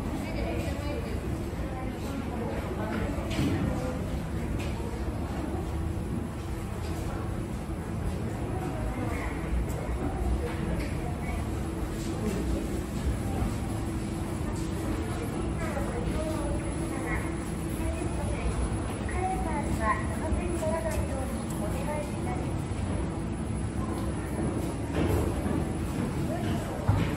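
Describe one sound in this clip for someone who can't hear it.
An escalator hums and rumbles steadily.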